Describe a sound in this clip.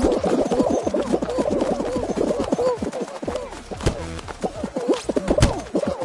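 Playful game music and cartoon squeaks bounce along.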